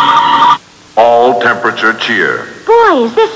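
A boy speaks loudly.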